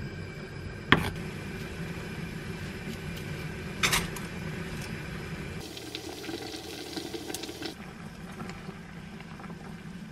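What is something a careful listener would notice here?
A gas burner hisses steadily.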